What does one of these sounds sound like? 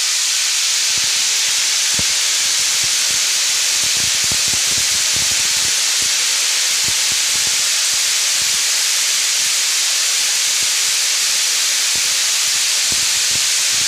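Grain trickles and patters onto a pile.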